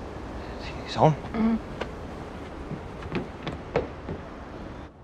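Footsteps thud up wooden steps.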